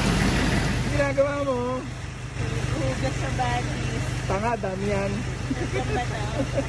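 A young woman laughs and talks with animation.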